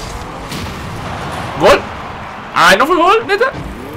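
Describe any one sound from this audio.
An explosion booms in the game.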